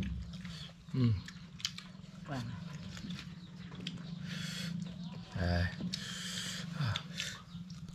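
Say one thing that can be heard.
Men crunch and chew food.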